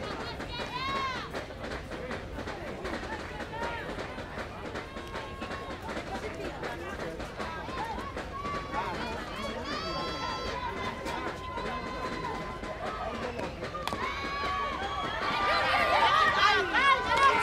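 Softball players shout and chatter across an open field.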